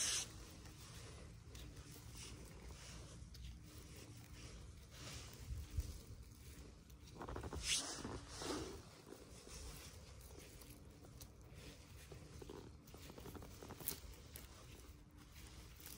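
A small knife cuts through soft mushroom stems.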